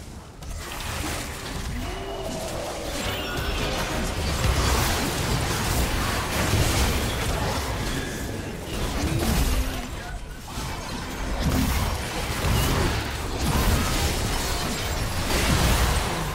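Magic spells crackle and burst in a fast video game battle.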